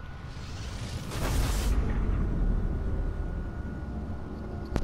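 A spaceship's engines roar as it flies past.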